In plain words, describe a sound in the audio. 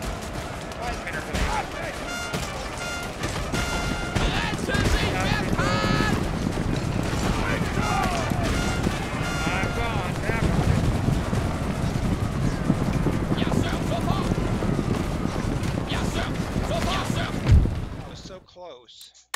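Musket shots crack and rattle in a loud battle.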